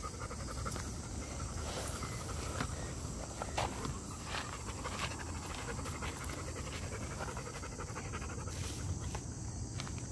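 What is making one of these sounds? A dog's paws pad and scuff on dry dirt.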